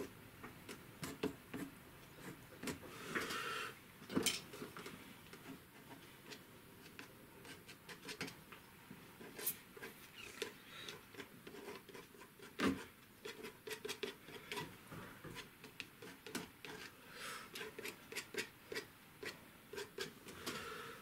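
A brush scrubs and dabs on paper close by.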